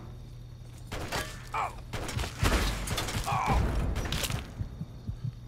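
Footsteps crunch quickly over rubble.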